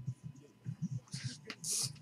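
A trading card slides and rustles between fingers.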